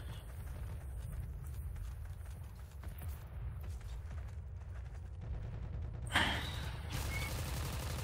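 Footsteps tread steadily over grass and dirt.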